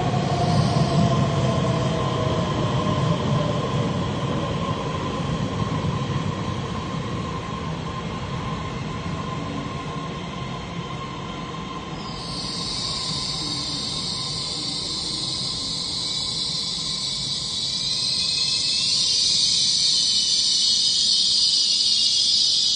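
A train rumbles and clatters along the track in an echoing underground station.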